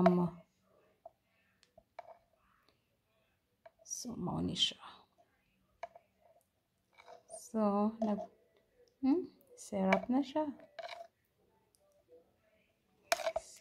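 A metal spoon clinks and scrapes against a glass bowl.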